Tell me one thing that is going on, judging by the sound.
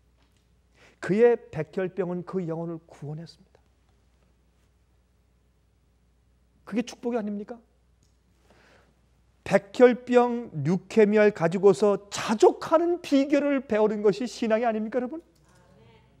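A middle-aged man speaks with animation into a microphone, pausing between phrases.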